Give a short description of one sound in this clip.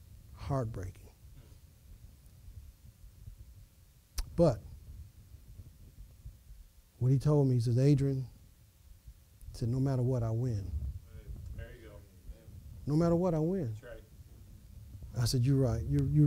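An elderly man speaks slowly and calmly, with long pauses.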